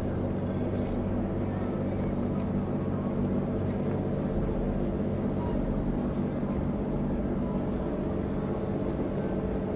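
Water churns and splashes behind a ship's stern.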